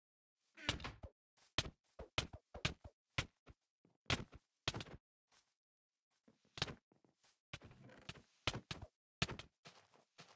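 Blows from a game fight land in quick, sharp thuds.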